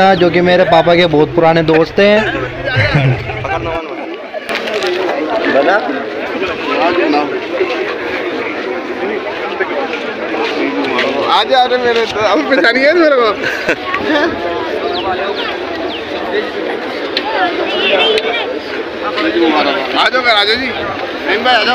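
A crowd of men chatters all around outdoors.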